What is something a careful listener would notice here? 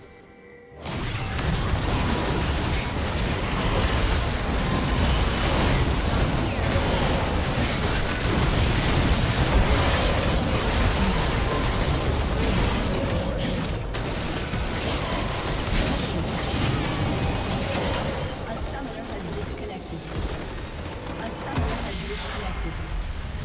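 Video game spells crackle and explode during a fierce battle.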